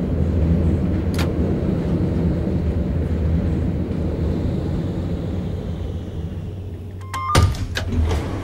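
A tram motor hums steadily.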